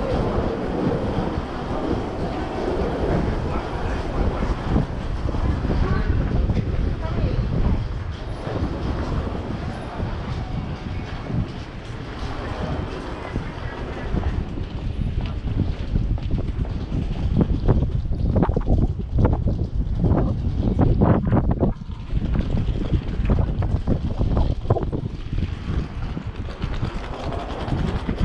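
Footsteps of many people walk on pavement.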